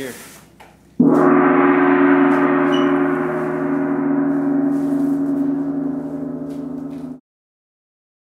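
A large gong is struck hard and rings with a deep, shimmering hum that slowly fades.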